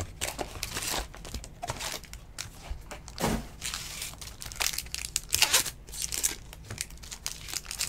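Cards shuffle and slide against each other.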